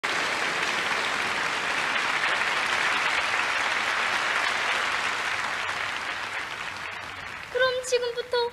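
Two young girls clap their hands.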